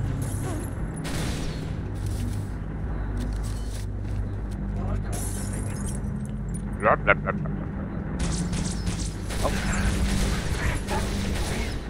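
A plasma rifle fires rapid buzzing bolts.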